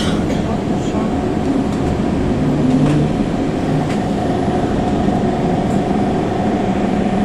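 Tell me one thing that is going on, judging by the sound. A tram hums and rumbles steadily as it rolls along the tracks.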